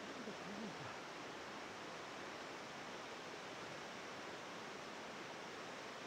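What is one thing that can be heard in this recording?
A river rushes steadily over rocks below.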